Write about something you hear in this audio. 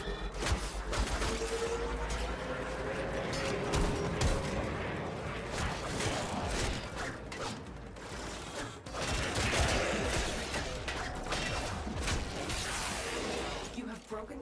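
Rapid gunfire and blasts crackle in a fast fight.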